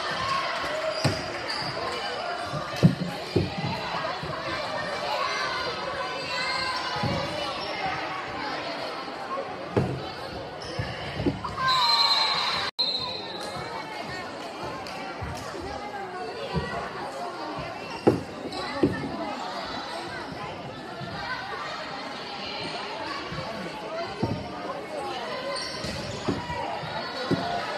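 A volleyball thumps off players' hands and forearms.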